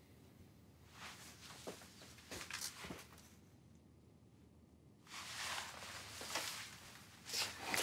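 Heavy clothing rustles as two men embrace.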